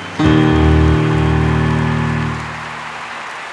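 A piano plays a closing chord.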